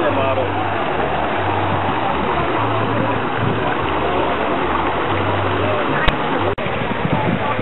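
A fountain splashes and gurgles steadily outdoors.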